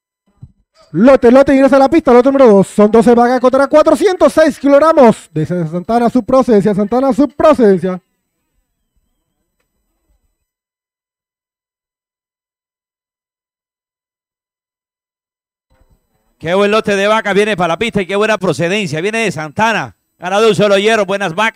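A man speaks rapidly over a loudspeaker, calling out an auction.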